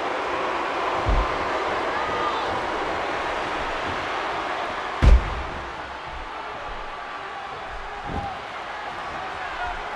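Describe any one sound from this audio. A crowd cheers and roars steadily in a large arena.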